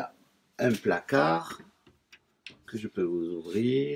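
A wooden cabinet door swings open.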